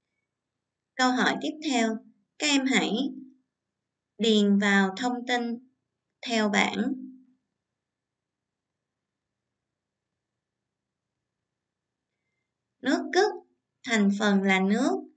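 A young woman speaks calmly and clearly into a close microphone, in short phrases with pauses.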